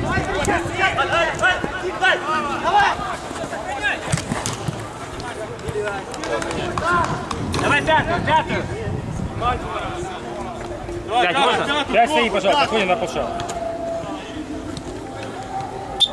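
Men shout and call to each other outdoors.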